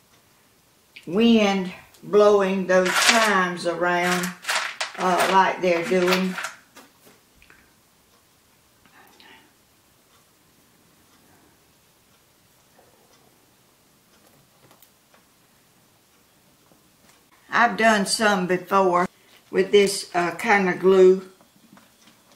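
An elderly woman speaks calmly and close by.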